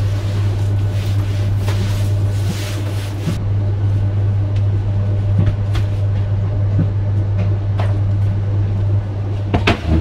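Footsteps tap on a hard floor a short way off.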